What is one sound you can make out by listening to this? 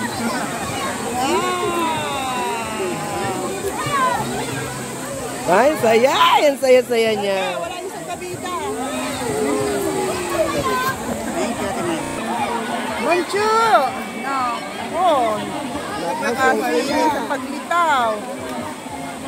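Several people talk and call out over each other outdoors.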